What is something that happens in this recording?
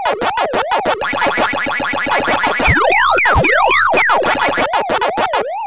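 A game's buzzy electronic warble drones on.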